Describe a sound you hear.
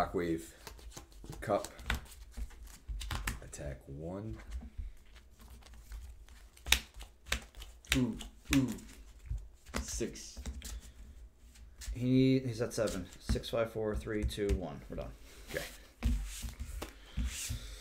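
Playing cards slap and slide on a table.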